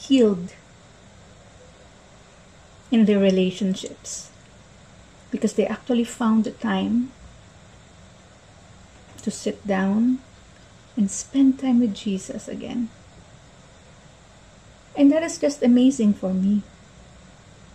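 A young woman talks calmly and closely into a microphone, in short phrases with pauses.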